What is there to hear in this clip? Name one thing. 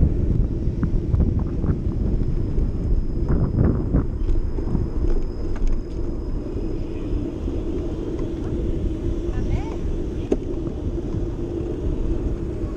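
Wind buffets and rumbles loudly across the microphone while travelling outdoors.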